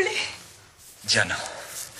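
A man speaks wearily, close by.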